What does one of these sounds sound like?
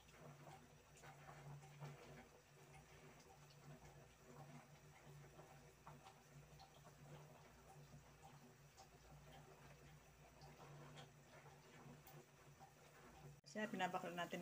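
A woman speaks quietly close by.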